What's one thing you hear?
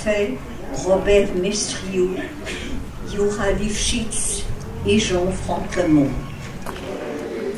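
An elderly woman reads aloud calmly into a microphone.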